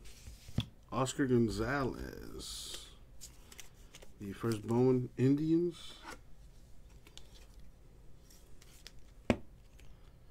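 Trading cards in plastic sleeves rustle and click as hands handle them.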